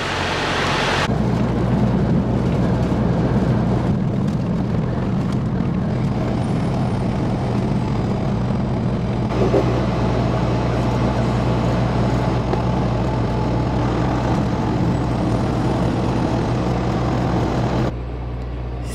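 Tyres roll over a road.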